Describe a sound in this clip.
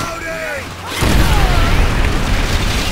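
An explosion booms deeply.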